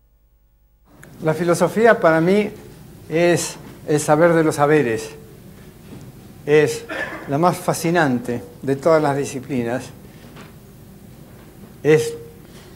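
An elderly man lectures calmly through a microphone in an echoing hall.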